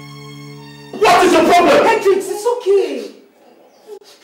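A woman shouts angrily close by.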